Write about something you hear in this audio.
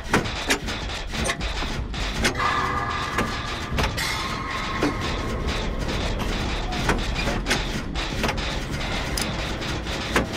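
A machine clanks and rattles steadily.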